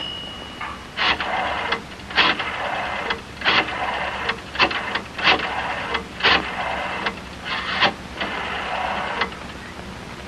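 A rotary phone dial clicks and whirs as a number is dialled.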